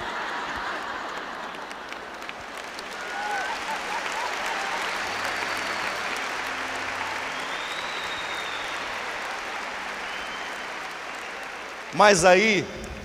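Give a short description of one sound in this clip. A large audience laughs and claps in a big hall.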